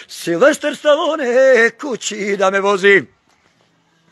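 A middle-aged man speaks loudly and with animation, close to the microphone.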